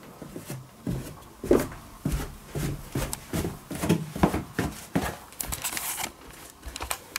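Footsteps thump on wooden stairs.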